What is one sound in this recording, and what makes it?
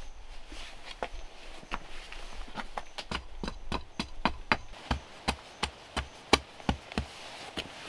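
A blade chops repeatedly into stone with sharp knocks.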